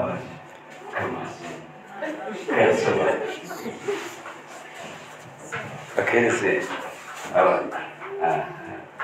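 A man speaks with animation through a microphone and loudspeakers in a reverberant hall.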